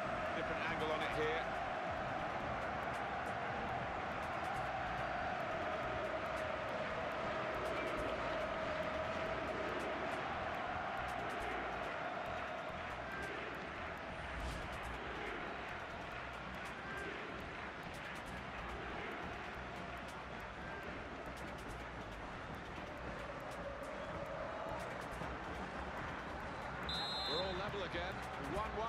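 A large crowd roars and cheers loudly, then slowly quietens.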